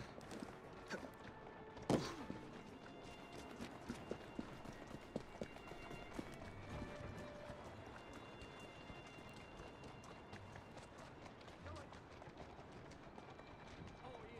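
A horse-drawn carriage rolls over cobblestones.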